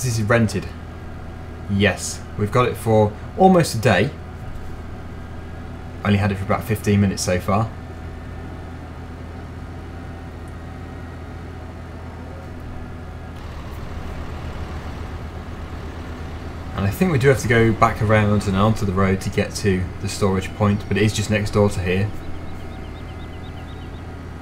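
A loader's diesel engine drones steadily.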